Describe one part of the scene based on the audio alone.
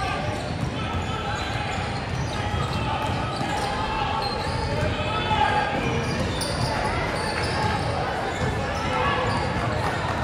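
Girls call out and chatter in a large echoing gym.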